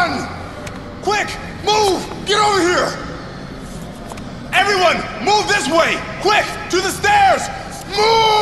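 A man shouts urgently from above.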